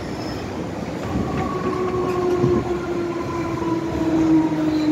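Train wheels whine with a rising, steady tone.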